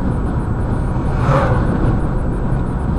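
A truck rushes past in the opposite direction with a brief whoosh.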